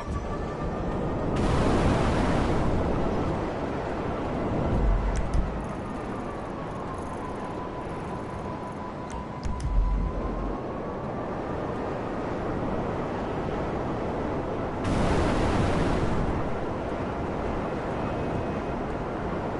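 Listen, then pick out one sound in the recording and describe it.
A jet engine roars steadily, surging louder now and then.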